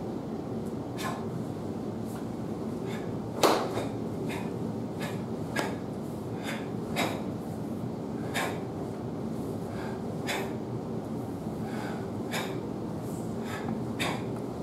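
A cloth uniform snaps sharply with quick movements.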